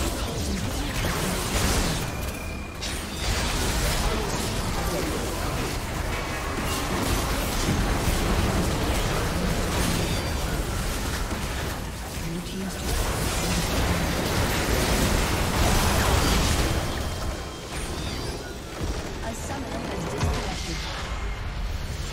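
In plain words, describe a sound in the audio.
Heavy magical blasts boom again and again.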